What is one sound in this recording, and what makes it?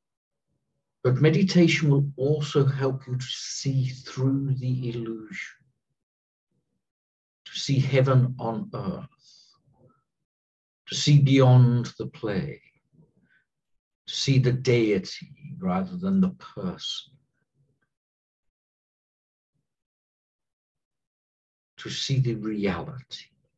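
A middle-aged man speaks slowly and calmly through a microphone, with long pauses.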